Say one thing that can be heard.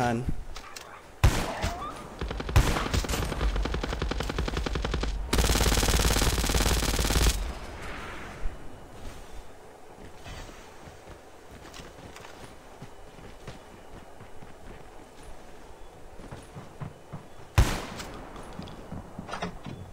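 Footsteps run over the ground.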